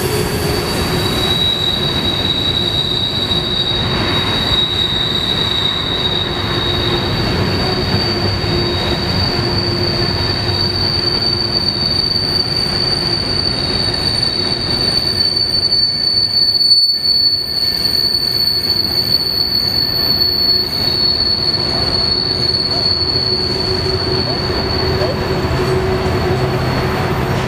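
Train wheels squeal high and steadily on the rails.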